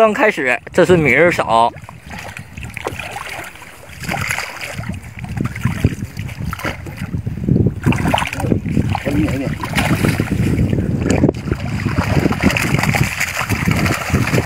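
Wet mud squelches under scooping hands.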